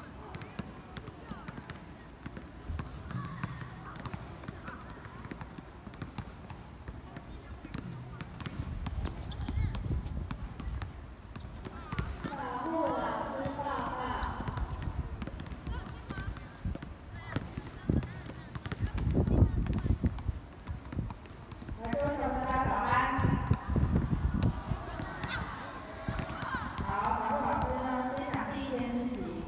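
Many children murmur and chatter softly.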